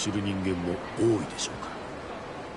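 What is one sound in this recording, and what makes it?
A man speaks in a low, gruff voice close by.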